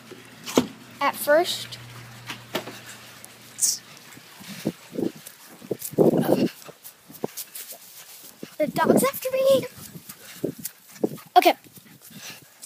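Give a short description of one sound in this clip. A young boy talks excitedly close to the microphone.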